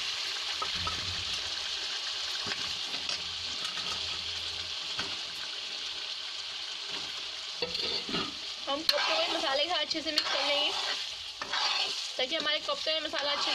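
Thick sauce bubbles and sizzles in a pan.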